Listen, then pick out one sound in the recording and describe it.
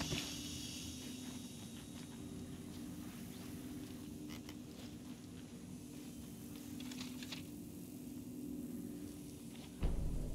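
Footsteps thud softly on a wooden floor.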